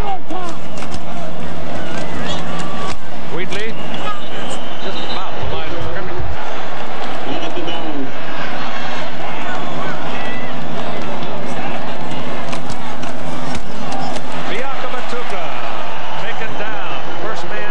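Football players' pads and helmets clash in a tackle.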